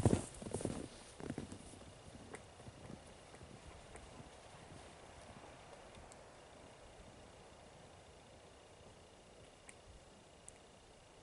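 Footsteps crunch through deep snow and fade as they move away.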